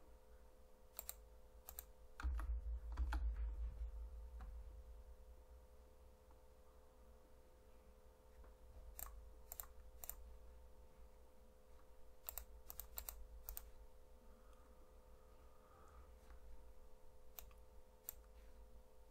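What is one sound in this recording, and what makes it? Short game interface clicks sound now and then.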